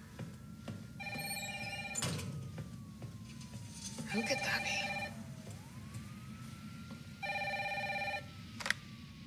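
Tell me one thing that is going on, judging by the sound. A phone rings.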